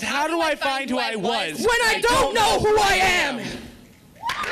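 A young man speaks forcefully into a microphone.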